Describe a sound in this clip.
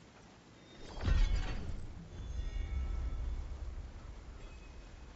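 A deep booming chime rings out and fades.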